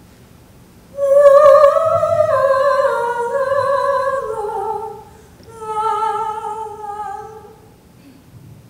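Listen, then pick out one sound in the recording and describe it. A woman sings in a clear high voice.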